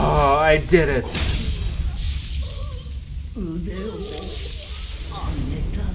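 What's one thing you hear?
Swords clash with a sharp metallic ring.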